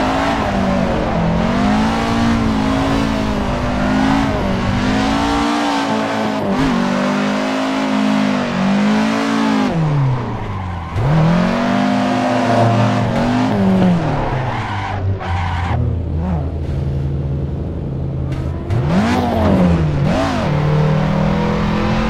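A car engine revs hard, rising and falling as gears change.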